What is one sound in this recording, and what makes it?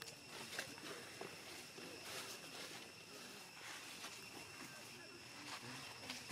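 Dry leaves rustle under monkeys moving on the ground.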